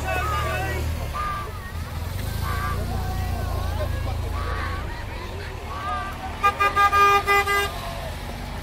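A van engine hums as it drives by.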